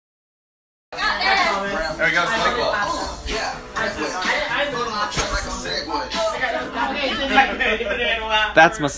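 Young women laugh and chatter close by.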